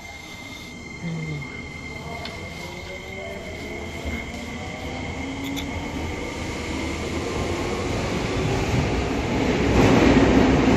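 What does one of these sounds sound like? The motors of an electric subway train whine and rise in pitch as it pulls away.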